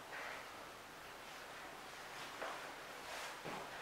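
A body thumps down onto a mat.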